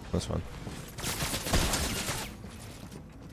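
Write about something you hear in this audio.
Video game building sounds clatter and crash.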